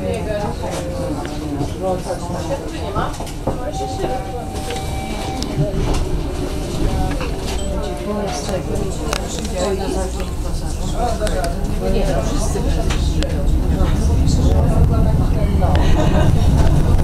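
An electric tram rolls along steel rails with a rumbling drone.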